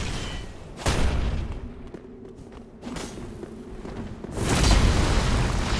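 A blade swishes through the air and strikes.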